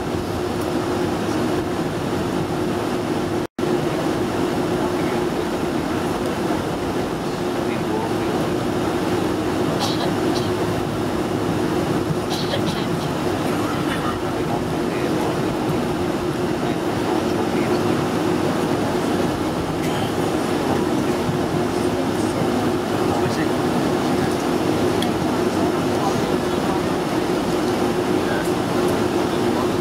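Tyres rumble over the taxiway.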